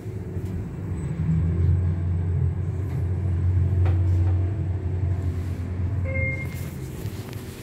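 An elevator hums low and steady as it moves.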